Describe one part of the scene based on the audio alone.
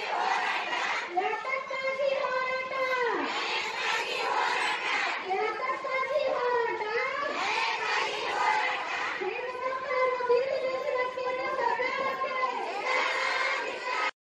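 A crowd of women chants slogans loudly in unison outdoors.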